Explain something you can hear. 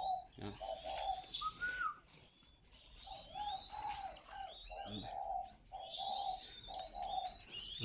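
Small caged birds chirp and twitter busily close by.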